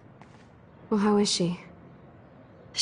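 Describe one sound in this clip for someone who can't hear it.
A young woman asks a short question.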